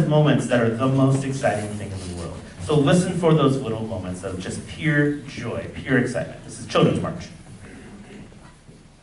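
A concert band plays loudly in a large hall, ending on a final chord that dies away.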